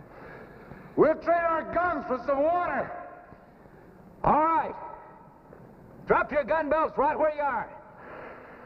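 A man shouts loudly and urgently, calling out in several bursts.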